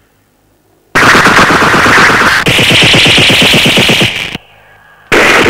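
A machine gun fires a long, rapid burst.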